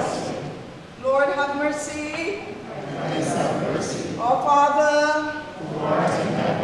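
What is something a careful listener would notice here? A woman briefly sings out a few held notes in an echoing hall.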